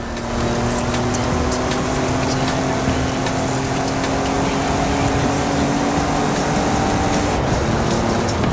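Wind rushes past a speeding truck.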